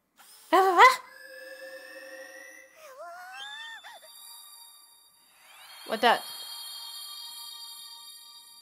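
A bright, shimmering electronic chime rings out steadily as a creature glows.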